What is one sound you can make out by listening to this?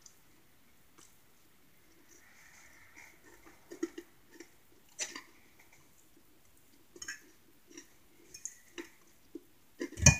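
A man chews food with wet smacking sounds.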